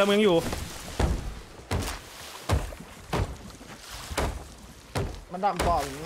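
A hammer knocks on wooden planks in steady blows.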